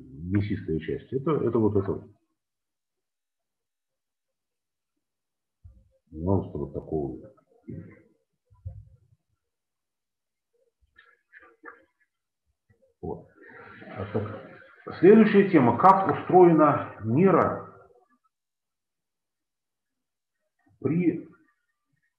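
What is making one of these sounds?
A man lectures calmly over an online call, with pauses.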